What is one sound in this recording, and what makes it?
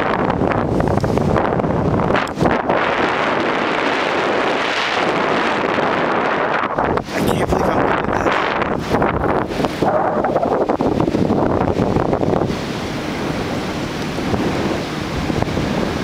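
Strong wind rushes and buffets against the microphone high in the open air.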